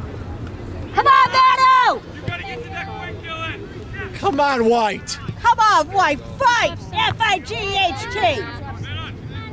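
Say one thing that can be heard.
Young men shout loudly across an open field.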